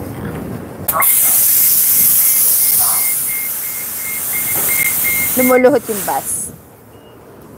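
A bus releases a loud hiss of air as its doors open.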